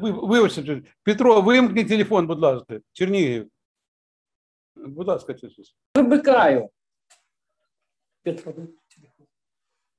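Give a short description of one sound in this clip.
A second older man speaks calmly through an online call, in short phrases with pauses.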